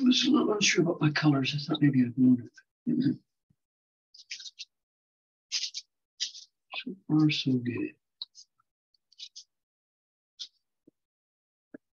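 A brush scratches lightly across paper in short strokes.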